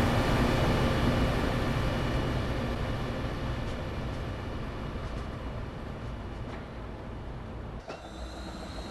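A train's engine rumbles and hums steadily, slowly fading away.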